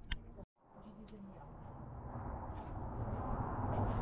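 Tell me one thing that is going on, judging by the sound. A pickaxe strikes hard ground.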